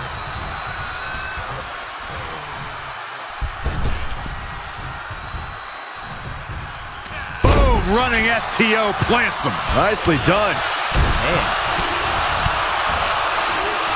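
Wrestlers' bodies thud against each other.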